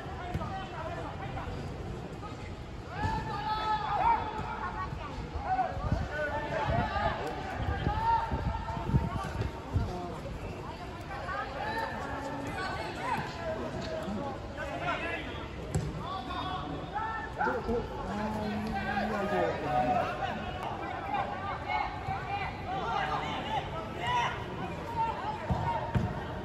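Young men shout to each other across a large open outdoor field.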